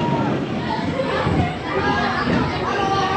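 Children shout and cheer close by.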